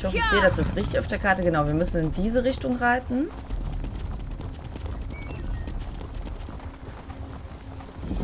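Hooves clop steadily as a horse gallops along a dirt path.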